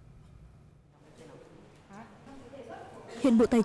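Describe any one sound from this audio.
A woman speaks through a loudspeaker in a room.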